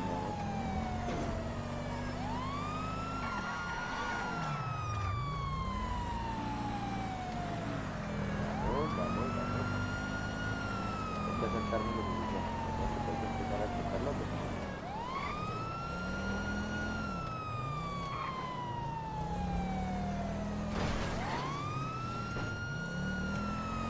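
A police siren wails, rising and falling slowly.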